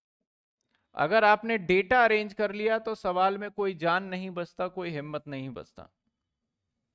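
A man speaks calmly into a headset microphone, close by.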